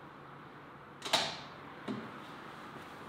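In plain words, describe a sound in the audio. A glass door opens.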